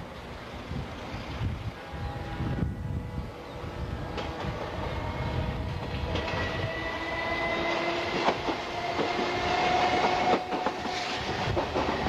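An electric train approaches along the tracks with a rising hum, growing louder.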